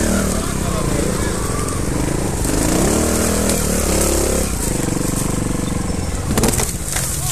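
A trials motorcycle revs while climbing a slope.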